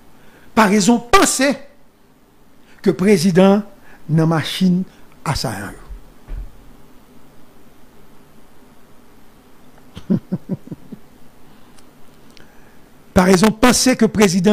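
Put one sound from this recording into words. A man speaks with animation into a close microphone, pausing between phrases.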